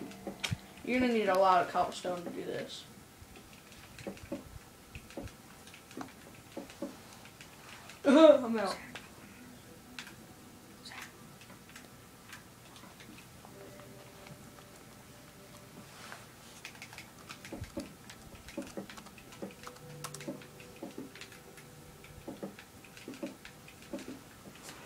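A video game plays quietly from a television.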